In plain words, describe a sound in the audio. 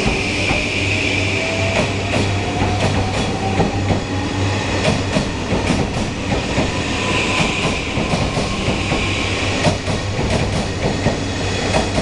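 Train wheels squeal and screech on the rails.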